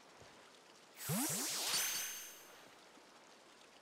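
A shimmering whoosh sweeps upward as a creature vanishes into a ball.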